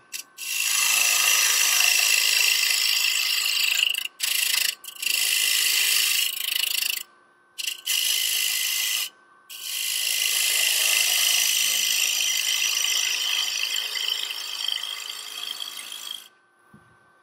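A wood lathe gouge scrapes and hisses against spinning wood.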